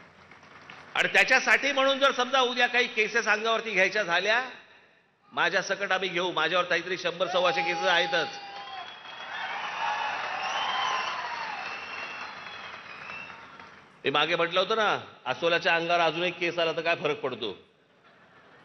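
A man speaks forcefully through a loudspeaker to a large outdoor crowd.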